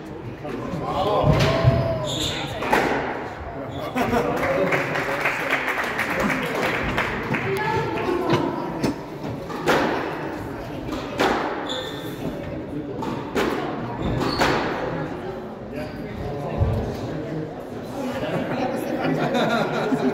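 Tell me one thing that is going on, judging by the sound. Sports shoes squeak on a wooden court floor.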